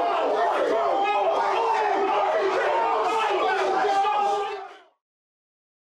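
A group of young men shout and cheer excitedly close by.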